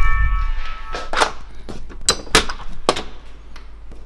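A door lock clicks and rattles as a key turns.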